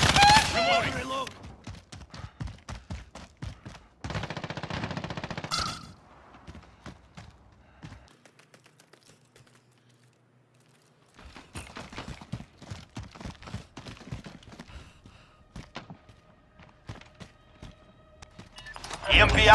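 Footsteps crunch quickly over gravel and rock.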